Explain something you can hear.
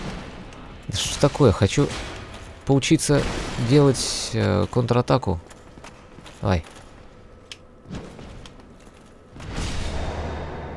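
Metal weapons clash and clang.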